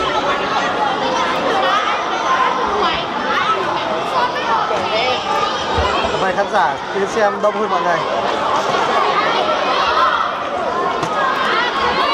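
A large crowd chatters and shouts loudly in an echoing hall.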